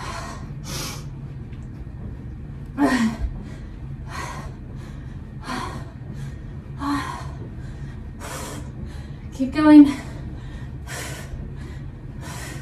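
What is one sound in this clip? A young woman breathes out hard in short, regular bursts close by.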